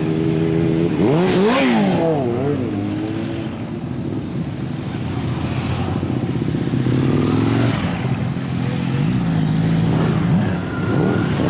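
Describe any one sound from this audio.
A motorcycle engine revs up and falls away as it passes close by.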